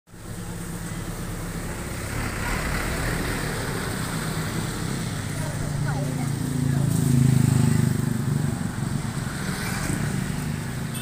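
A motorbike engine idles close by.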